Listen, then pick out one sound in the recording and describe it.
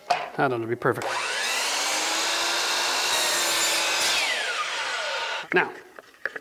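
A miter saw whirs loudly as its blade spins up, cuts through wood and winds down.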